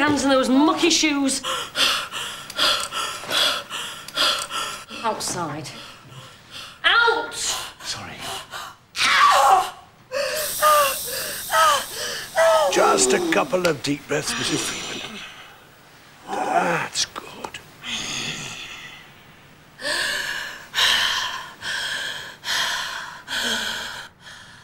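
A woman moans and cries out in pain close by.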